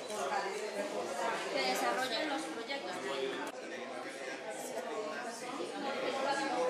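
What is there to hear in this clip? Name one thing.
Several men and women talk at once nearby, in a busy murmur of conversation.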